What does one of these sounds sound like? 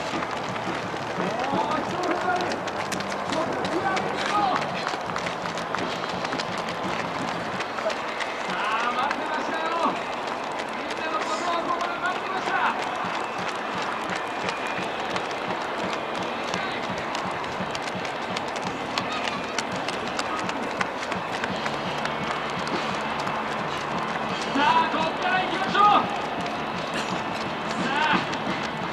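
A woman cheers loudly nearby.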